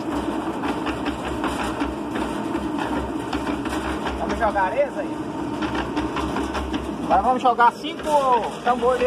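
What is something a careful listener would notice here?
A concrete mixer drum rumbles and churns steadily.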